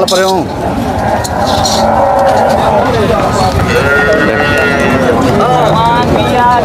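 A crowd of men talk loudly nearby outdoors.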